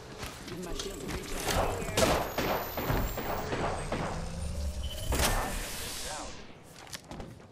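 An electric charging hum crackles and fizzes.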